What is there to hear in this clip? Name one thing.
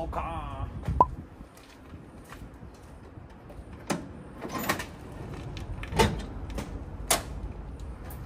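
Metal clanks and knocks sharply.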